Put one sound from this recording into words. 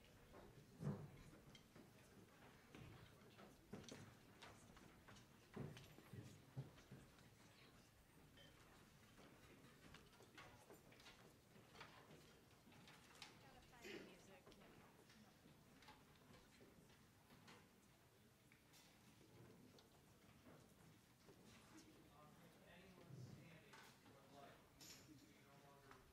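A crowd of young people murmurs and chats quietly in a large echoing hall.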